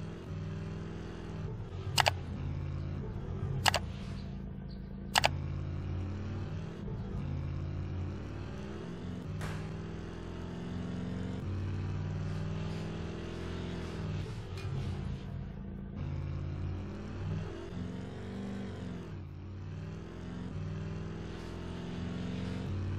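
A game's car engine drones.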